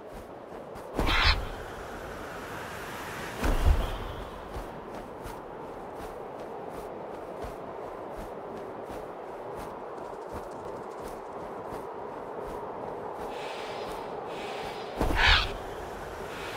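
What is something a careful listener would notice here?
An eagle lets out a sharp, high screech.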